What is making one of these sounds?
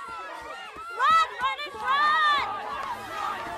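A young girl shouts loudly nearby.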